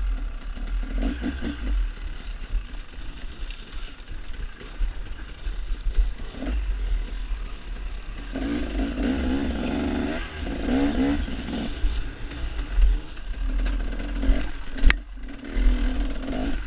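A dirt bike engine revs and rumbles up close, rising and falling in pitch.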